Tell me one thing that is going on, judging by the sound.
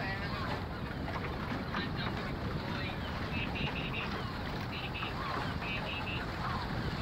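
Wind buffets loudly outdoors over open water.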